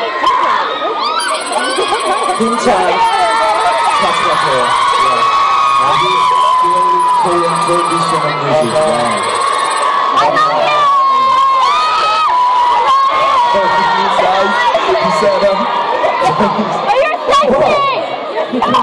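A large crowd of young women screams and cheers loudly in a big echoing hall.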